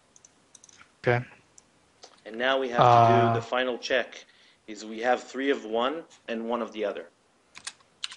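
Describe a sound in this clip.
A young man speaks calmly through a headset microphone.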